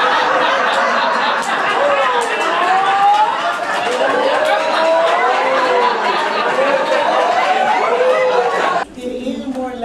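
Many voices talk loudly over one another.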